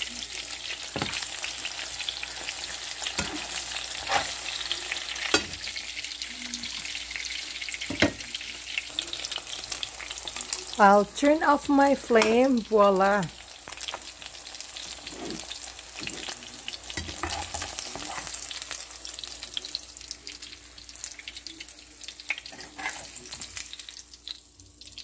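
A plastic spatula scrapes and taps against a frying pan.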